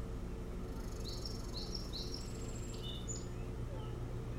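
An osprey gives a few short, high whistling chirps close by.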